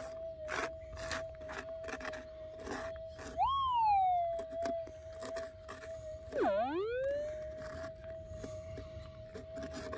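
Fingers scrape and rub gritty soil on the detector's coil.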